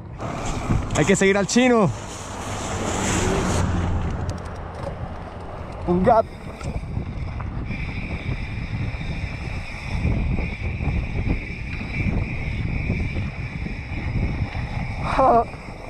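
Bicycle tyres crunch over gravel and dirt.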